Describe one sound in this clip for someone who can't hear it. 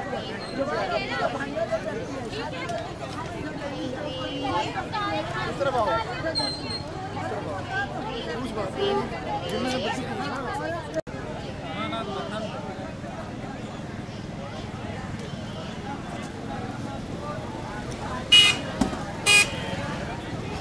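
A crowd of women talk and call out outdoors.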